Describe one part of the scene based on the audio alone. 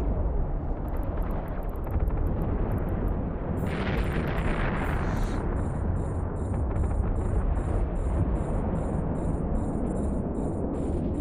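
Deep explosions boom and rumble steadily.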